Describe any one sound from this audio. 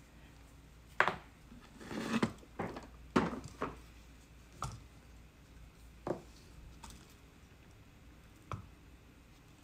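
A clay bowl knocks against a hard surface.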